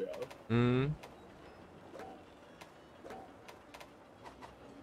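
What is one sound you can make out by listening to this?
Short soft clicks tick as a menu cursor moves.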